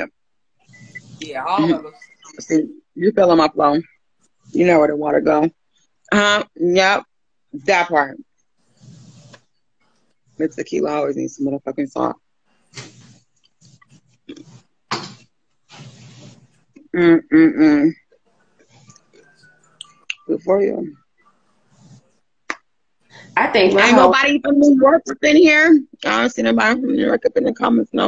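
Another woman speaks over an online call.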